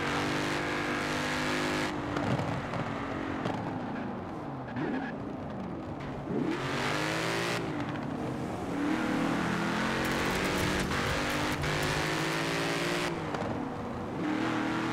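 A sports car engine roars, revving up and down through the gears.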